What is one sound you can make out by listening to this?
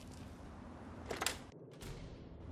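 A heavy metal door creaks open.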